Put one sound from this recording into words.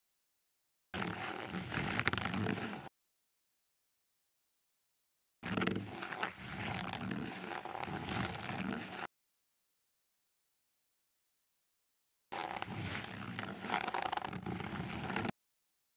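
A blade scrapes and crunches against hard skin.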